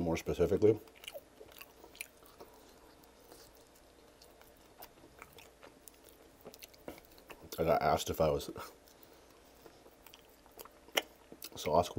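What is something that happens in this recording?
A man bites into and chews a saucy chicken wing close to a microphone.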